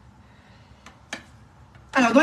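A cake tin is set down on a countertop with a light knock.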